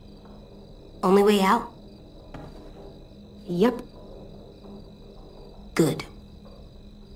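A young boy speaks softly and briefly.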